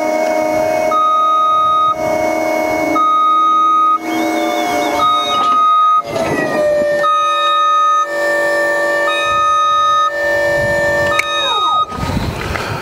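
An alarm on a machine beeps in a regular on-and-off pattern.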